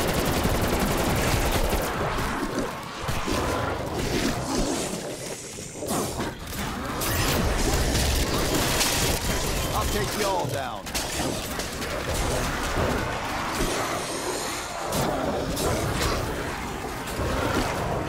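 Monsters snarl and growl.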